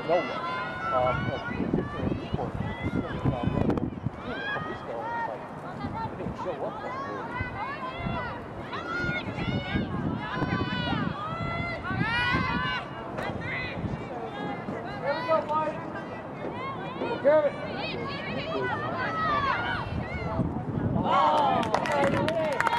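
Young women shout and call to each other outdoors on an open field.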